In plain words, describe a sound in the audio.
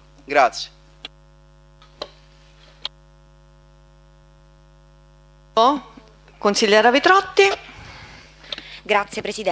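A man speaks through a microphone in an echoing hall, with pauses.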